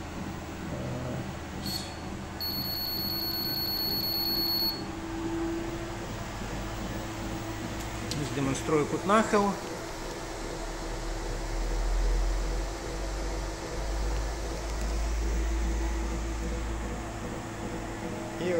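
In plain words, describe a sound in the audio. A treadmill motor hums steadily with the belt running.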